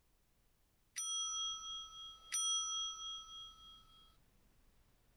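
A bright electronic chime rings twice and fades.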